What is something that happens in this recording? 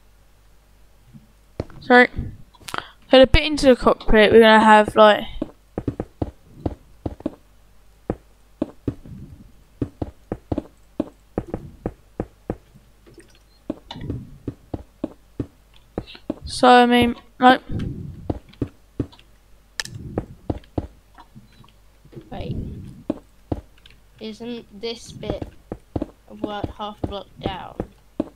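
Blocks are placed with quick, soft clicks in a video game.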